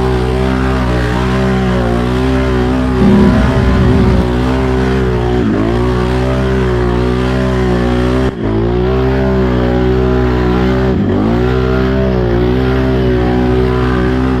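Mud sprays and spatters against the quad.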